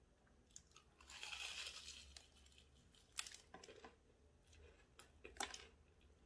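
A woman chews crunchy food noisily, close to a microphone.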